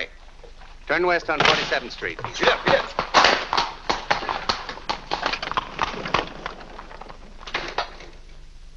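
Horse hooves clop on a cobbled street.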